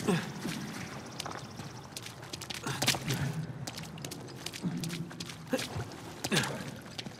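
Footsteps crunch steadily on stone and gravel.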